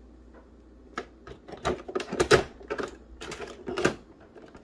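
A small plastic model car clatters as it is set down on a metal stand.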